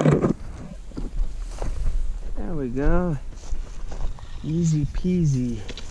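Trekking poles click against rocks.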